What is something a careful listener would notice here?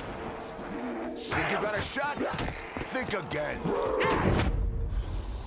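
Zombies growl and snarl close by.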